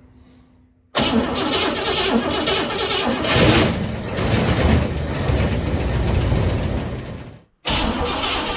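A car engine runs close by, revving unevenly.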